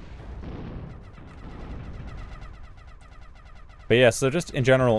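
Rapid small gunfire crackles in a distant battle.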